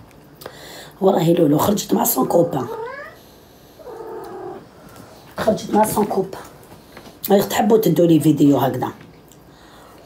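A young woman talks close to the microphone with animation, in short bursts.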